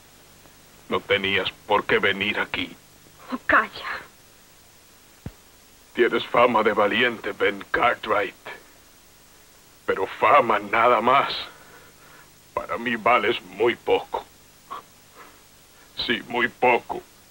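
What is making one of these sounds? A middle-aged man speaks in a choked, tearful voice, close by.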